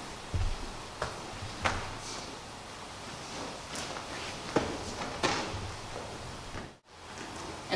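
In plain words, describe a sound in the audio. Bodies thump and shuffle on a padded mat.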